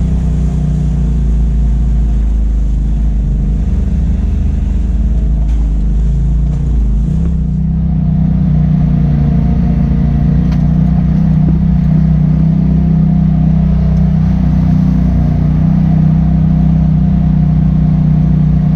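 An off-road vehicle's engine drones steadily up close.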